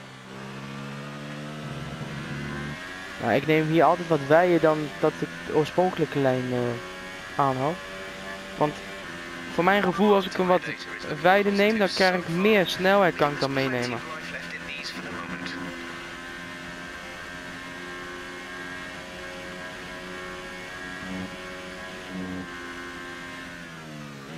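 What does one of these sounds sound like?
A Formula One car engine screams at full throttle, shifting up through the gears.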